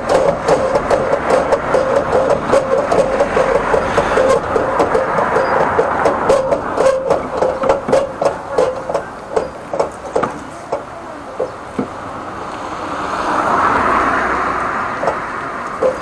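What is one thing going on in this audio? A pressure washer hose sprays water in a rapid, pulsing hiss.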